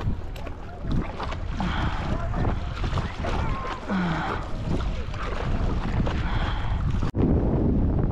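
A paddle splashes through the water in steady strokes.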